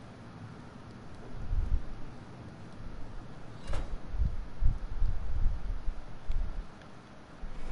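Small footsteps patter softly across a tiled floor.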